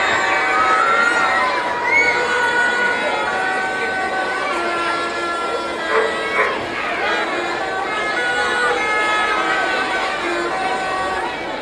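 A large outdoor crowd murmurs and chatters throughout.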